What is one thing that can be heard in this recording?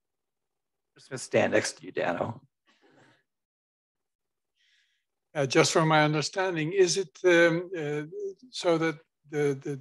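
A man speaks calmly through a microphone in an online call.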